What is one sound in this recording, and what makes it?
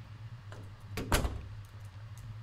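A door bangs open with a sudden thud.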